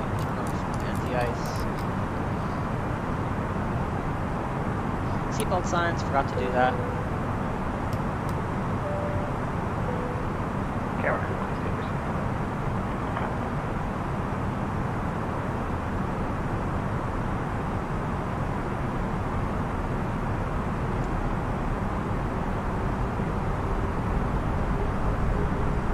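A steady low rumble of jet engines and airflow fills the cockpit.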